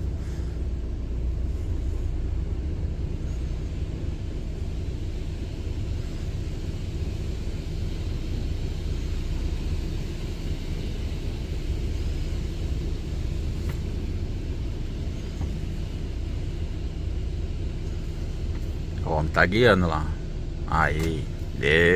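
A truck engine rumbles low and steady as the truck rolls slowly forward.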